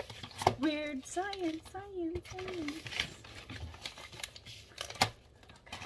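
Paper rustles and crinkles as an envelope is handled.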